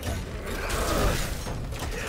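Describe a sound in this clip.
Laser blasters zap in a fight between game figures.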